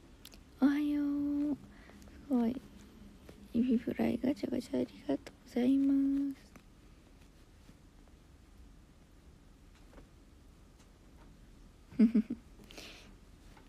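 A young woman speaks playfully close by, in short bursts with pauses.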